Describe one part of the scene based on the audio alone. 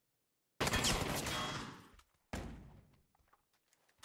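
Loud gunshots boom and echo.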